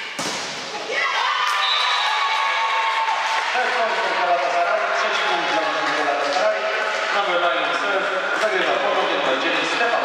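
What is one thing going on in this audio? Young women cheer and shout excitedly in a large echoing hall.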